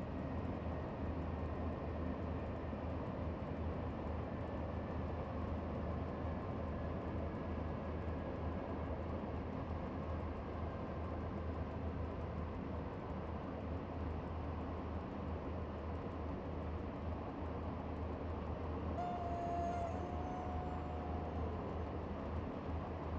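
Train wheels clatter and rumble on the rails.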